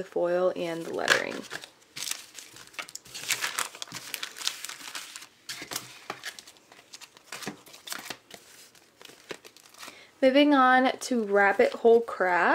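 Sheets of paper rustle and crinkle as they are handled.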